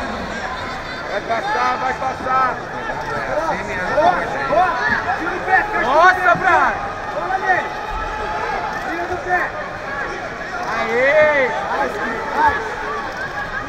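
Men in the crowd shout instructions loudly from a distance.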